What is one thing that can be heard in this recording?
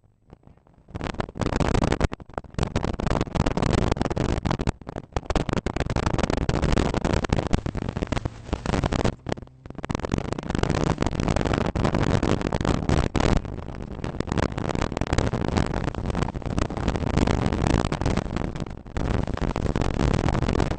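A small hatchback's engine revs hard, heard from inside the cabin.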